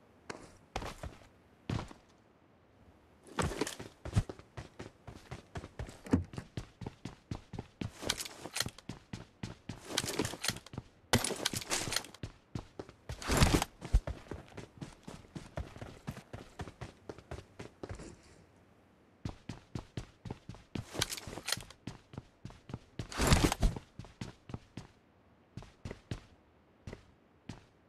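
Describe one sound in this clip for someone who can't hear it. Footsteps thud quickly and steadily on hard ground.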